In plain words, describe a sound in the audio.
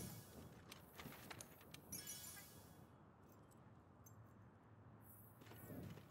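Menu selections click and beep.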